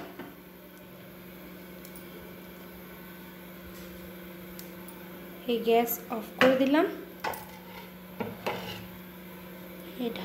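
A pot of curry simmers and bubbles softly.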